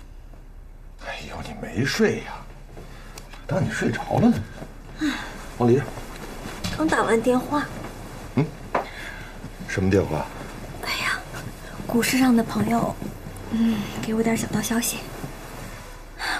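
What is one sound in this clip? A middle-aged man speaks calmly and softly nearby.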